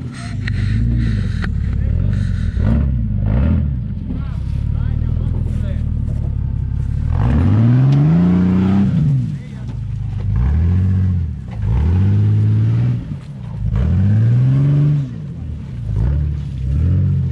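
An engine revs hard in repeated bursts.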